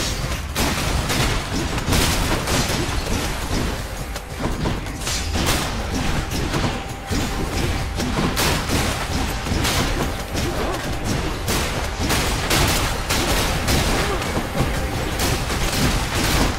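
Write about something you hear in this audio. Game sound effects of clashing blows and magic blasts ring out in quick bursts.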